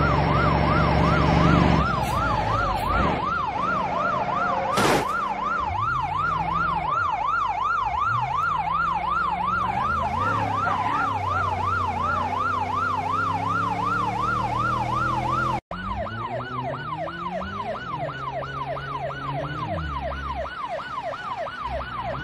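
A police siren wails steadily.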